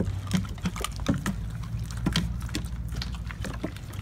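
A dog's claws click on wooden boards.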